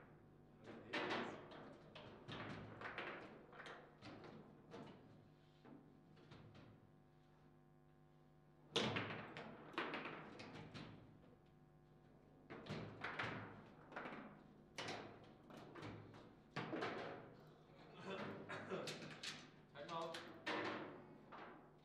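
A foosball ball clacks sharply against the players and the table walls.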